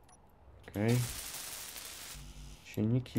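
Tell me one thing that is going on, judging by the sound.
A power tool grinds metal with a harsh hiss.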